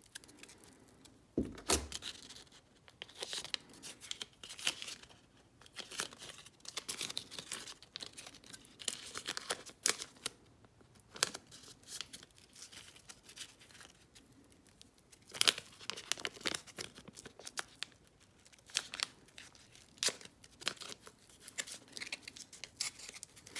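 Masking tape rips and crinkles as hands wrap it around a metal tube.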